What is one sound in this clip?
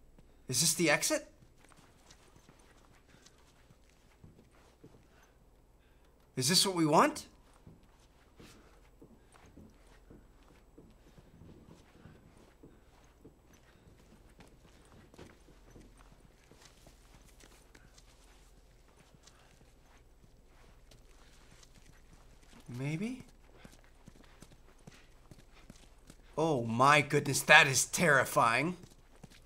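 A young man talks in short bursts close to a microphone.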